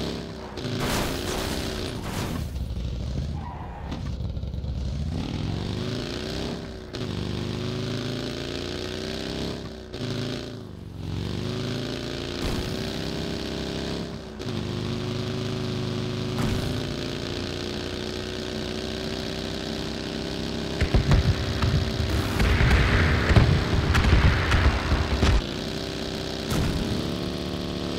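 A buggy engine roars and revs up and down.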